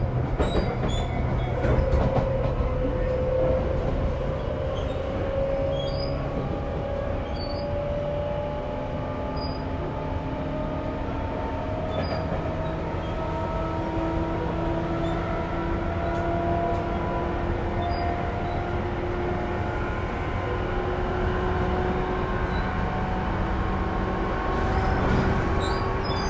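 An electric train motor whines, slowly rising in pitch.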